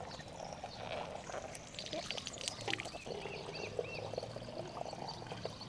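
Water runs from a spout and splashes into a plastic bottle.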